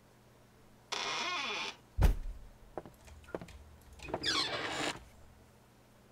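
A wooden door creaks as it swings open and shut.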